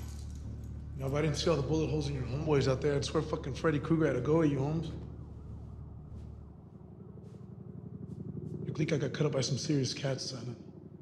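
A young man speaks tensely in a low voice, close by.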